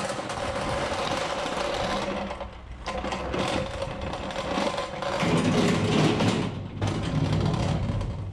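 A pallet truck's wheels rattle over concrete and a metal ramp.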